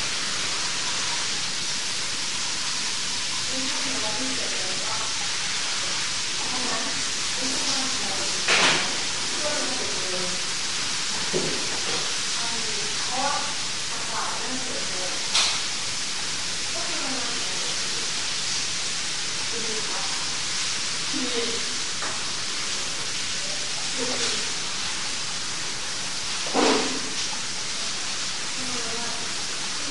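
A young woman talks quietly at a distance.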